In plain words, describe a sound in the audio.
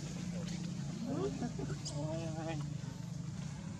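Monkeys chatter and squeak nearby.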